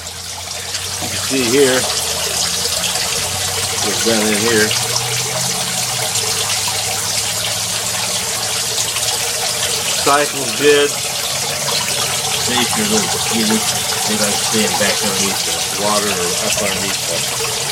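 Water splashes steadily into a tank from several thin streams.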